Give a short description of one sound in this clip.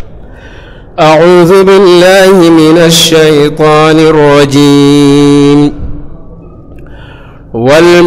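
A man chants loudly and melodiously into a microphone.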